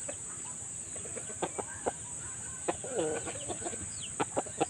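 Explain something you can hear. A rooster clucks softly nearby.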